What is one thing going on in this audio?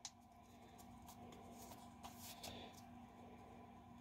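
Playing cards rustle and slide against each other.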